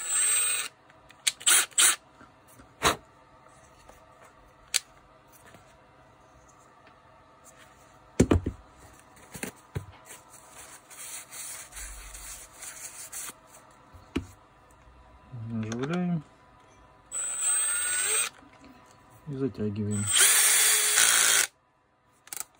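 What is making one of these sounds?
A drill chuck clicks and ratchets as it is turned by hand.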